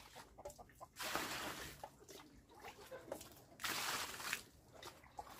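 Water pours from a scoop onto a pile of sand.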